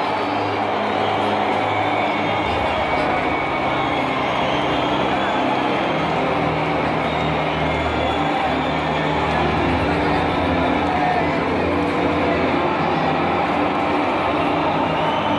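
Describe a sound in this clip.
A large stadium crowd roars and chants throughout, echoing in a vast open space.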